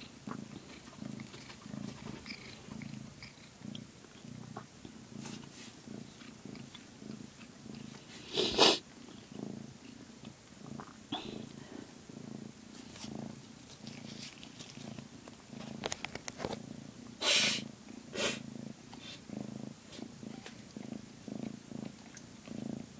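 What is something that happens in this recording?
A cat purrs steadily and loudly up close.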